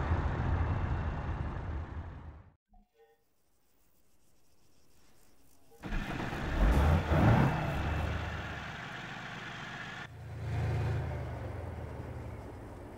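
A tank engine rumbles deeply and steadily.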